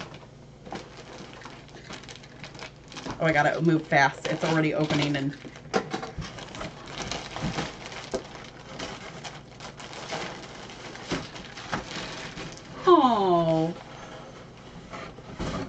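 Plastic wrapping crinkles and rustles.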